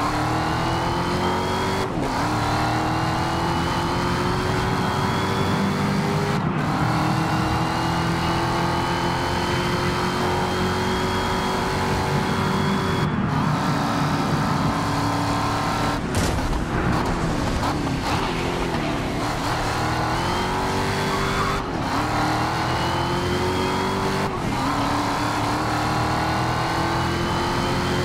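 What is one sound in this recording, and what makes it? A race car engine roars loudly, its pitch climbing steadily and dropping sharply at each gear change.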